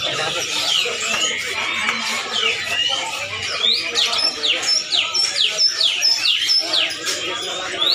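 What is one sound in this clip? Parrots screech and chirp loudly and quickly, close by.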